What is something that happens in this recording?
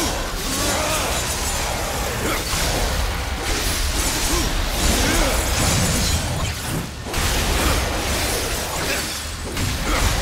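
Blades slash and smash through enemies in quick succession.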